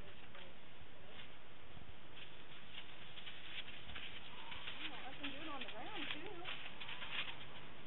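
A horse's hooves thud on soft dirt as the horse walks.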